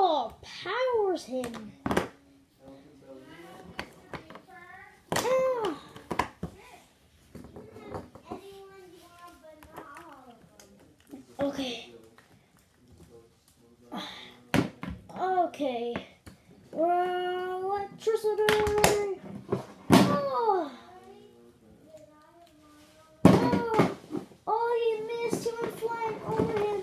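Plastic toy figures knock and clatter against a toy ring.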